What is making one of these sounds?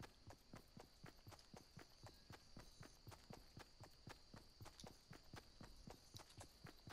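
Quick footsteps run through grass.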